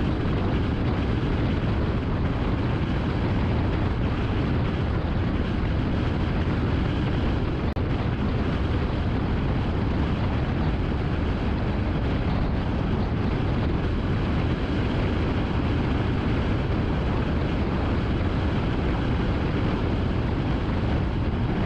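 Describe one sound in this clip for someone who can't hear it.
Road noise rumbles steadily from inside a moving car on a highway.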